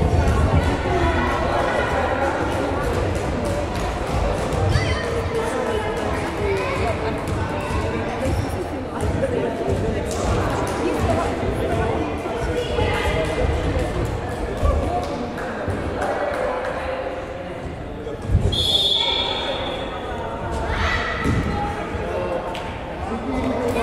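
Children's voices chatter and call out in a large echoing hall.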